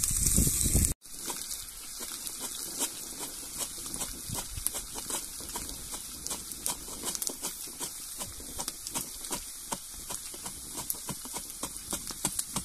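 A wooden pestle pounds rhythmically in a glass jar.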